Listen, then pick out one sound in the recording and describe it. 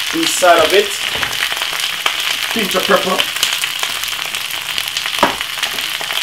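Vegetables sizzle and crackle in a hot pan.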